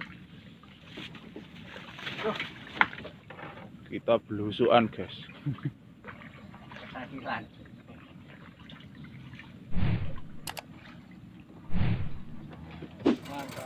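A pole splashes and pushes through water.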